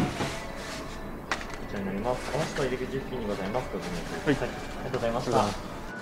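A plastic carrier bag rustles as it is packed.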